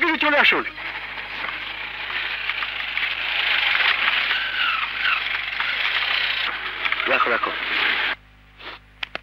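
An auto-rickshaw engine putters as it drives past.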